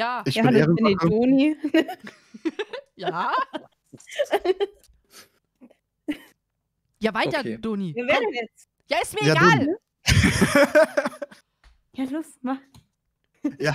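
A young woman talks with animation close to a microphone, in bursts with pauses.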